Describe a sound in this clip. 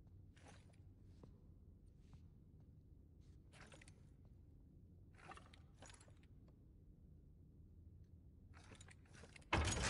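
Stone tiles scrape and grind as they slide into place.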